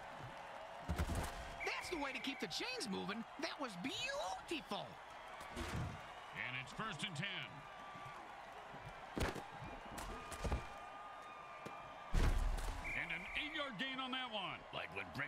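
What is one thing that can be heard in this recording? Armoured players crash together in heavy tackles.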